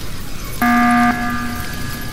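A game alarm blares briefly with a ringing tone.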